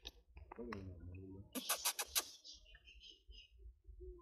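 A baby monkey chews on food.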